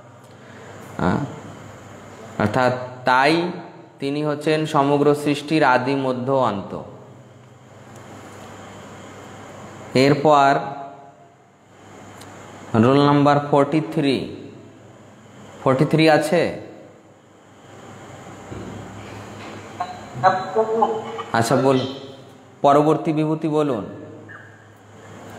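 A man speaks calmly and slowly in bursts, close to a microphone.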